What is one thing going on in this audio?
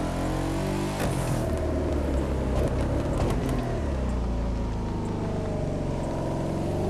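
Tyres screech on asphalt through a curve.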